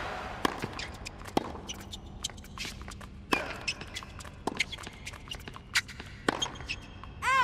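A tennis ball is struck sharply by a racket, back and forth.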